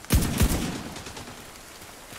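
A rifle fires loud shots that echo.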